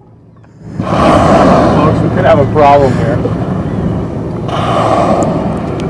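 A whale blows out a loud rush of breath at a distance.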